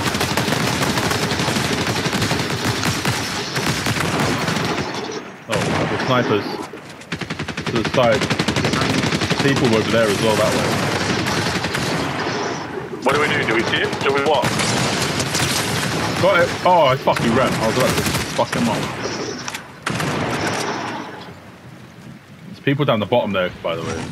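Rifle shots crack.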